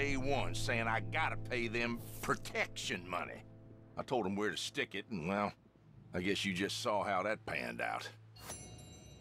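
A man speaks gruffly.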